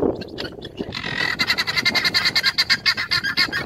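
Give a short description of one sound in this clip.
Guineafowl cackle loudly in a fast, rattling chatter.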